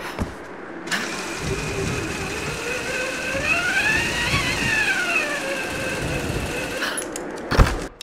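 A pulley whirs along a taut rope, rising and then falling in pitch.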